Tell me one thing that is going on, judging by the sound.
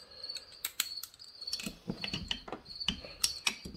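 Metal engine parts click and rattle as hands turn them.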